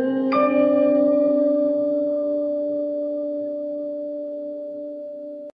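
Two women sing a long held note.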